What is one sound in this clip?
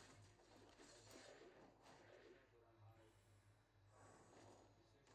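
Game magic effects whoosh and crackle.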